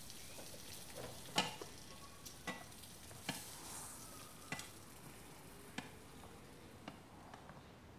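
A metal pan clatters and knocks against a hard surface.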